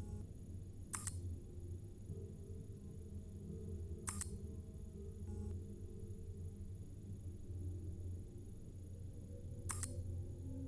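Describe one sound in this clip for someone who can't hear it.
A game menu gives short clicks as its options change.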